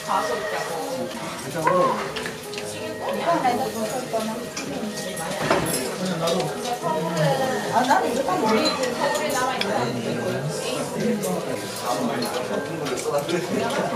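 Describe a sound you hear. A young woman slurps noodles close by.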